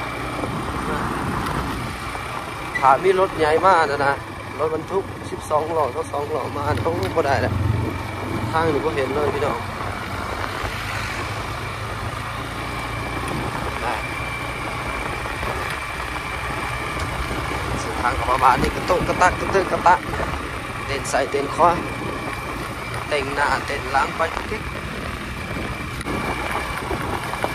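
Tyres crunch over a dirt road.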